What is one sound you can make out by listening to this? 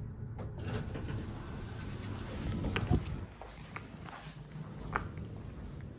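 Lift doors slide open.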